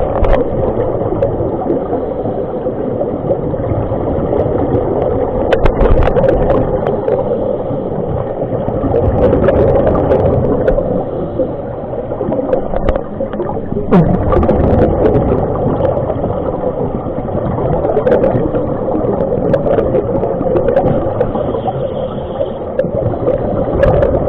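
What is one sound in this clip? Scuba divers breathe out through regulators, sending bubbles gurgling and bubbling up underwater.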